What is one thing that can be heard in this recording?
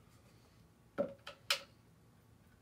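A metal paint can clanks against the floor.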